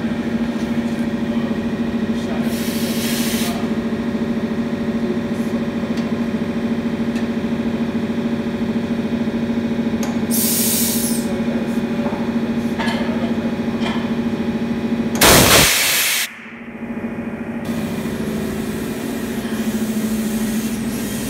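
A tyre changing machine hums steadily.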